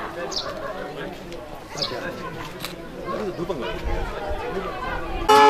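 A crowd of men chatter and call out nearby outdoors.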